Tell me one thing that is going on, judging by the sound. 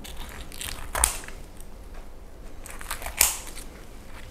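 Scissors snip through roast chicken.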